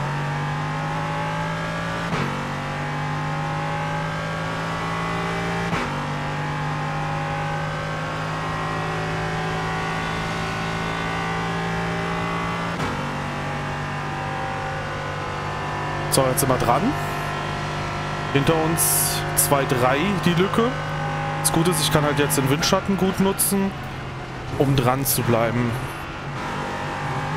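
A race car engine drones steadily and shifts gears.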